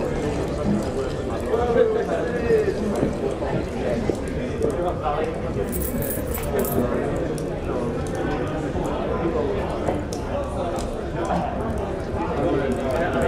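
Cups and plates clink and knock.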